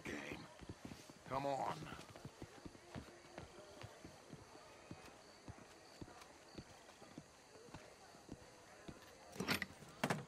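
Footsteps tap steadily on a hard path.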